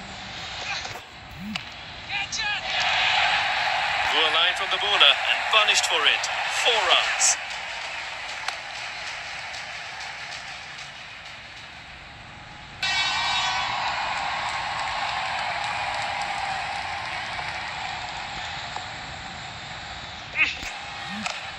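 A bat cracks against a cricket ball.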